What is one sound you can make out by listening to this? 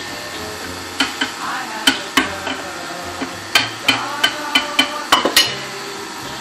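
A glass blender jar knocks and clinks as it is handled.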